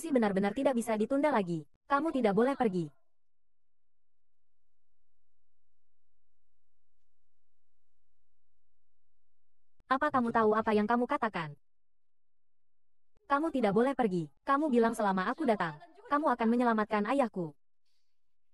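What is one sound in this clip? A young woman speaks with emotion, close by.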